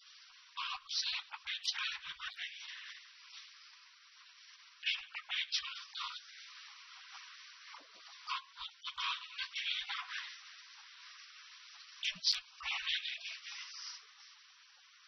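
An elderly man speaks calmly through a microphone, heard as a thin broadcast.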